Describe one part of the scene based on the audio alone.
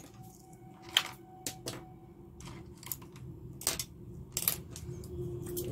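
Small objects click and tap as they are handled close by.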